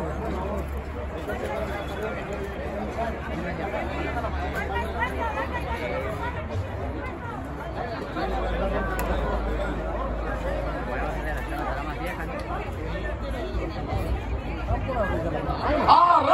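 A large crowd of men and women chatters loudly all around, outdoors.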